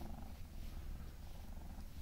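A hand rubs a cat's fur with a soft rustle.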